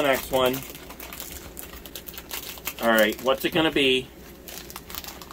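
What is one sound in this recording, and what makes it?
Plastic wrapping crinkles as a pack is torn open.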